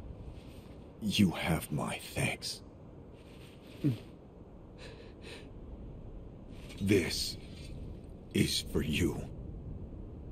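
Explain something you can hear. A man speaks softly and weakly, close by.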